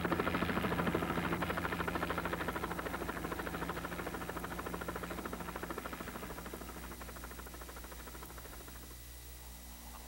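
A helicopter engine drones overhead and slowly fades into the distance.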